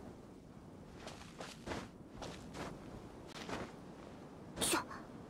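Light footsteps patter on grass.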